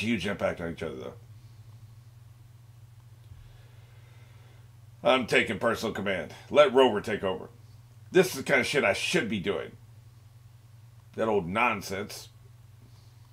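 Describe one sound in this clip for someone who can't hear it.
An older man speaks calmly and closely into a microphone, in short bursts with pauses.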